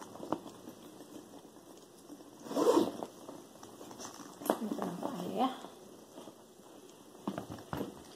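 Handbag straps and buckles rustle and clink.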